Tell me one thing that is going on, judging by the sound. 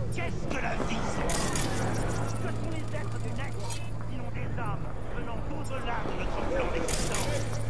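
Footsteps walk along a hard pavement.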